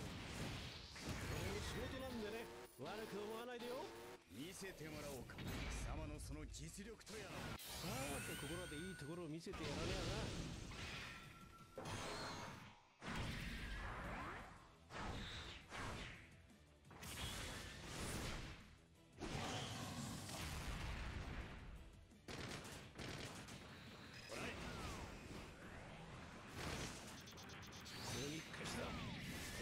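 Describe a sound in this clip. Metal swords clang and slash in a game battle.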